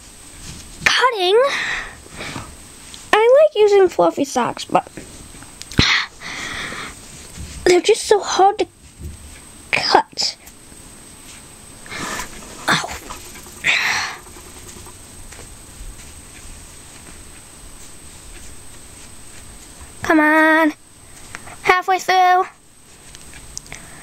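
A hand rubs and rustles a soft plush toy close by.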